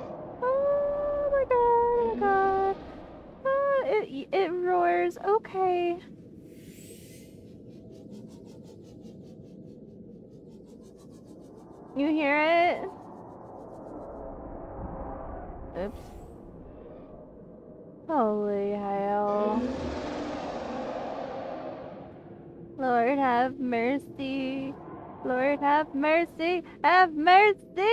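A young woman speaks animatedly into a microphone, in bursts.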